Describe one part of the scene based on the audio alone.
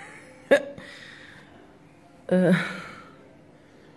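A young man laughs.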